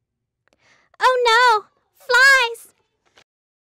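A young woman shrieks in alarm, close by.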